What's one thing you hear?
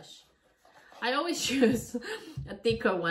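A woman talks up close, calmly and cheerfully.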